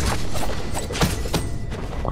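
A sword swishes through the air with a sharp whoosh.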